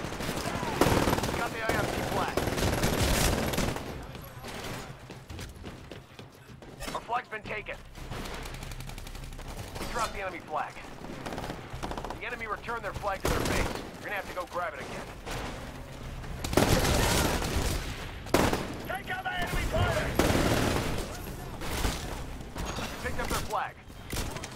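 Rapid gunfire bursts out in loud, sharp volleys.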